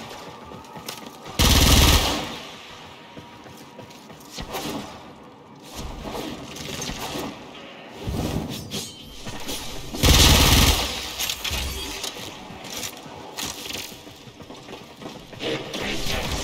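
Gunshots and energy blasts crack in bursts.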